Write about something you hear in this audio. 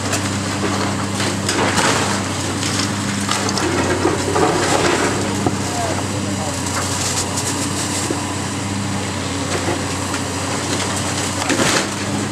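Water sprays from a hose with a steady hiss.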